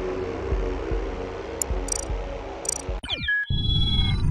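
Triumphant game music plays, then cuts off abruptly.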